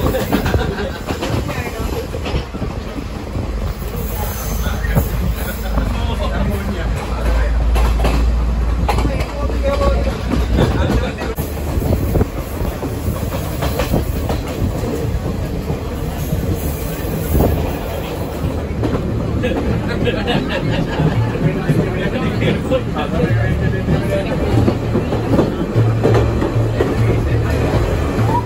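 A train rumbles and clatters steadily along the track.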